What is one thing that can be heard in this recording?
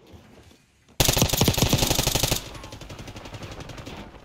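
A rifle fires rapid, loud bursts at close range.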